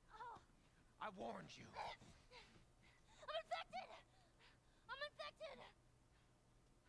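A young girl screams in panic.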